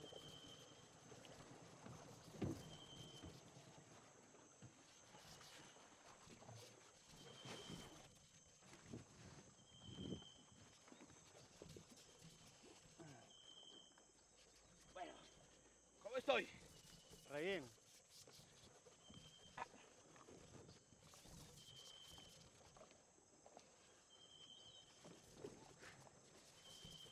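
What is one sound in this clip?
Water laps gently at the shore.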